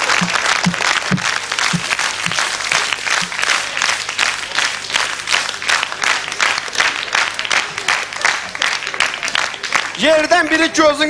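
An audience claps in a steady rhythm.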